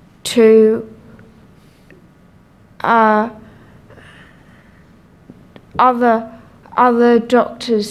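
A young woman speaks haltingly into a microphone, in short bursts with pauses.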